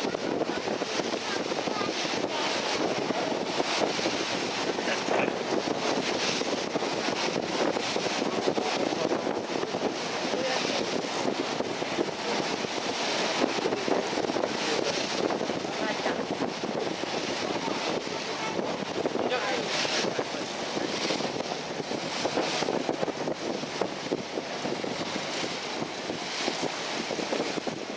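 Wind rushes steadily past a moving boat.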